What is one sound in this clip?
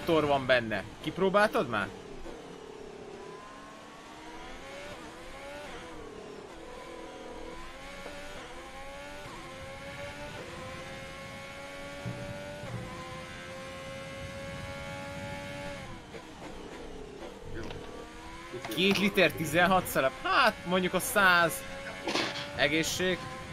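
A racing car engine whines, rising and falling in pitch as it shifts gears.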